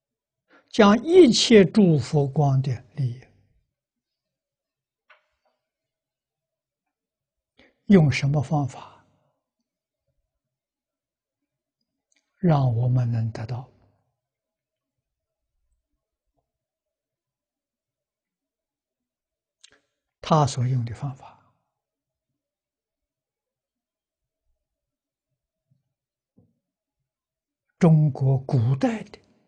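An elderly man speaks calmly in short phrases with long pauses, close to a microphone.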